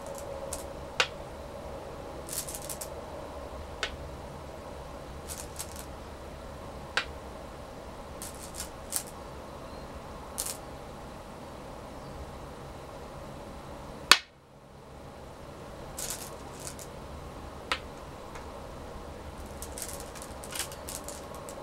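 Stones click sharply onto a wooden board now and then.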